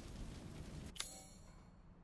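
A short click sounds as a menu opens.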